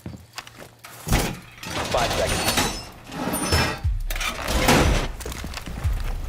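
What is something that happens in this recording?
Gear rattles and boots scrape as a soldier climbs down a rope.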